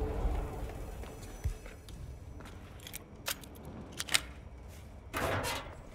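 A metal cabinet door clicks and rattles open.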